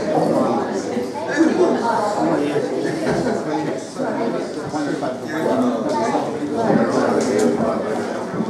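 An upright bass is plucked with a walking beat.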